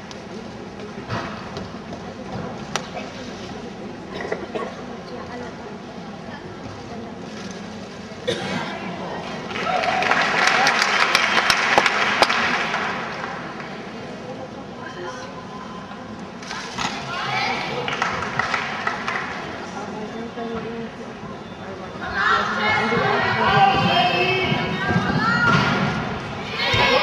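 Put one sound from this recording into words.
A gymnast's feet thud on a balance beam.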